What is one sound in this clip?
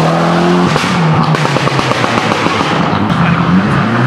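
A rally car engine revs hard and fades away.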